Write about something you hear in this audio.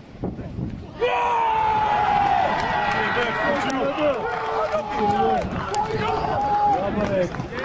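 Men cheer and shout loudly outdoors.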